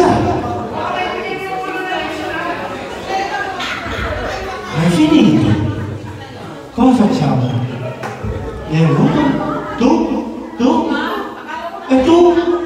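Young children chatter and call out in an echoing hall.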